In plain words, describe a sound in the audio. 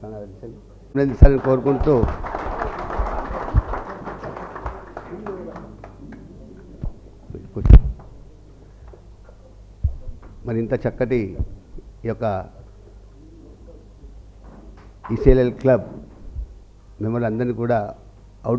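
A man speaks through a microphone to a room.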